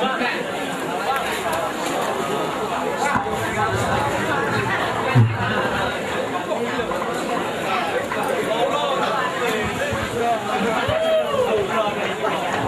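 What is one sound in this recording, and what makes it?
A crowd of people chatters and calls out all around.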